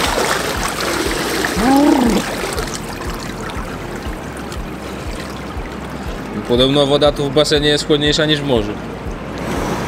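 Water sloshes and splashes around a man wading in a pool.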